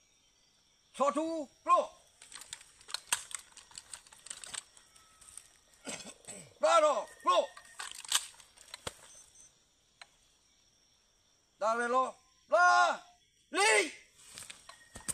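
A man shouts drill commands loudly outdoors.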